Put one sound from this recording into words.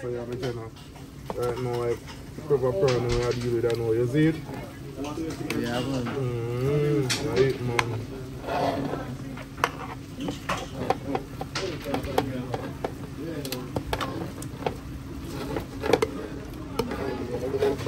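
A metal ladle scrapes and clinks against a metal pan.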